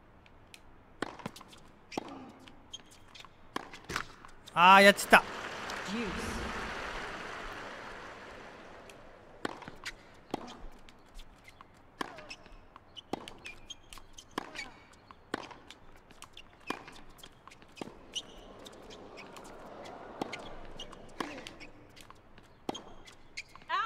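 Tennis balls are struck with rackets in a quick rally.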